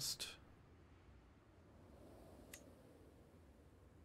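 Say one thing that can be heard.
A soft game menu click sounds as a window opens.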